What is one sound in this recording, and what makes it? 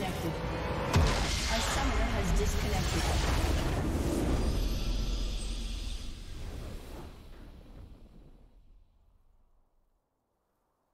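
A triumphant victory fanfare swells and fades out.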